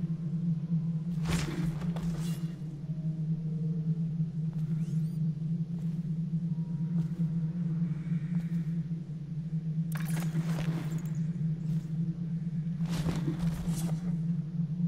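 A heavy body thuds into a metal bin.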